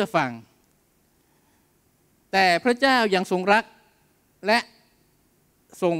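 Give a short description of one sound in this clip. A man speaks calmly into a microphone in a reverberant hall, with pauses between phrases.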